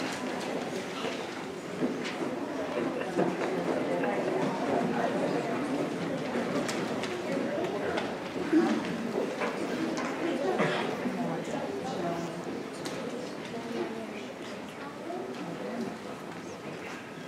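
A crowd of children chatters and talks in a large echoing hall.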